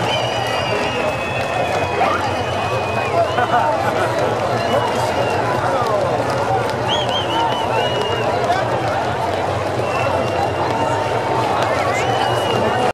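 A rock band plays loudly through large loudspeakers outdoors.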